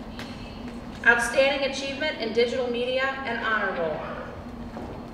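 A voice announces through a loudspeaker in a large echoing hall.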